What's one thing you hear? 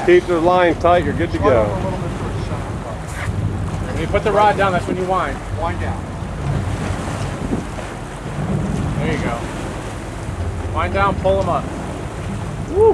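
Waves slosh against a boat's hull.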